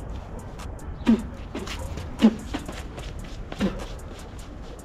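A young man speaks a few short words close by.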